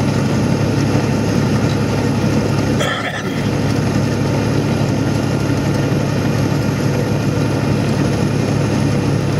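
A vehicle's engine drones steadily.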